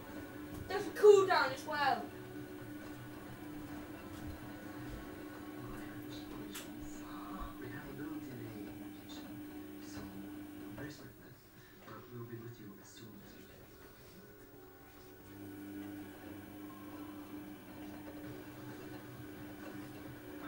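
A washing machine drum turns with a low steady hum.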